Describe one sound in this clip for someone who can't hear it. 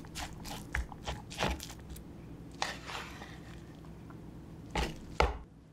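A wooden spoon scrapes and taps against a plastic bowl.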